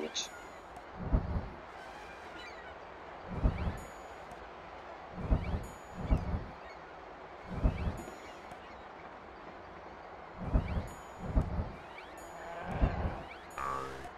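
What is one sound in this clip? Soft low thuds sound again and again as trees are planted.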